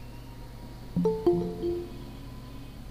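A computer notification chime rings out in a short series of tones.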